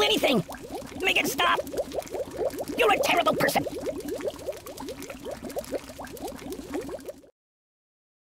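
Liquid bubbles and gurgles rapidly in a tank.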